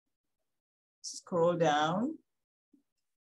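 A woman speaks briefly and calmly into a close microphone.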